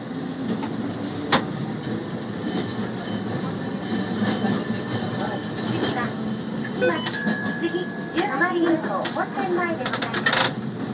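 A tram rumbles and rattles along its rails.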